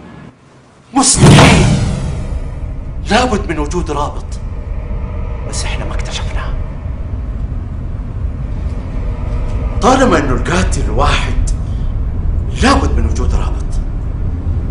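A middle-aged man speaks angrily and forcefully, close by.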